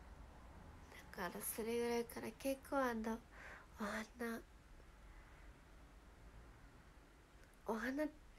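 A young woman speaks softly and cheerfully close to a microphone.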